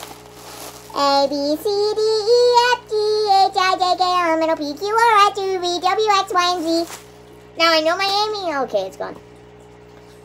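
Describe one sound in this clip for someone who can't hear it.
A boy talks loudly and with animation close by.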